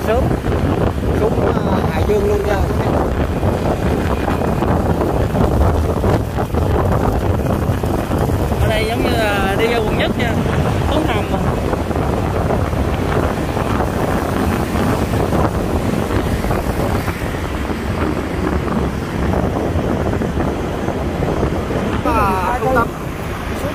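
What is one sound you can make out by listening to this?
Wind rumbles steadily over a moving motorbike.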